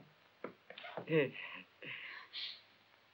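A young woman speaks briefly.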